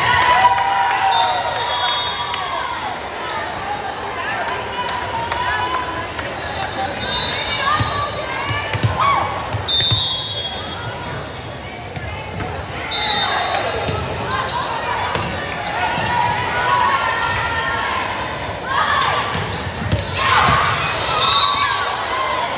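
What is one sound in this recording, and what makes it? Shoes squeak sharply on a hardwood floor.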